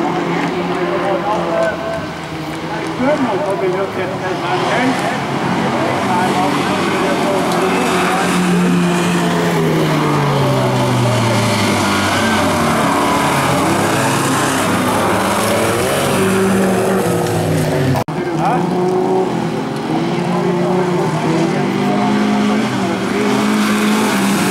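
Several race car engines roar and rev loudly.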